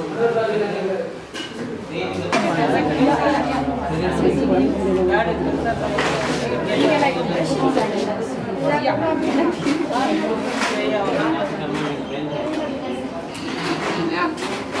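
Young women talk calmly nearby.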